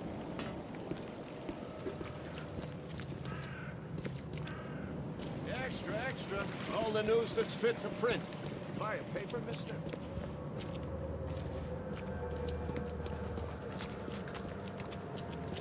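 Footsteps tap on a stone pavement.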